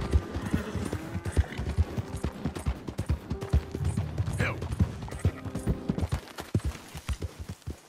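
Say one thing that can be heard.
A horse gallops on a dirt road.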